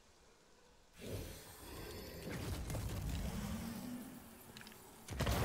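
A magical burst whooshes and rumbles loudly.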